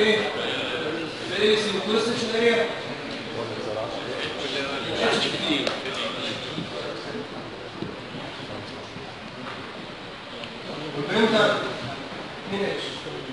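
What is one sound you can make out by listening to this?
A man speaks calmly and steadily, as if lecturing.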